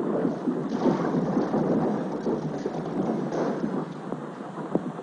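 An explosion roars and rumbles, then slowly fades.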